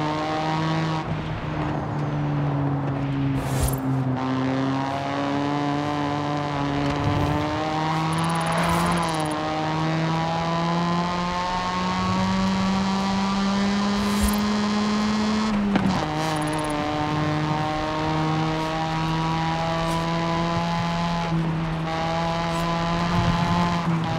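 A sports car engine roars steadily, rising in pitch as it speeds up and dropping briefly at each gear change.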